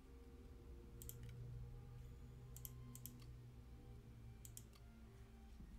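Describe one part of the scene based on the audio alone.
Short, soft interface clicks sound several times.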